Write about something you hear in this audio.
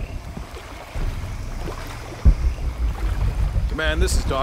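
Water sloshes and splashes as someone wades through it.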